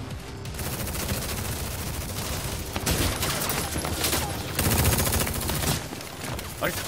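A minigun fires in a rapid roar.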